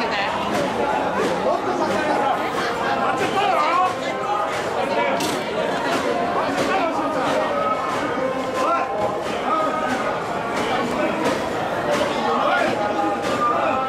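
A large crowd of men chants and shouts rhythmically nearby, outdoors.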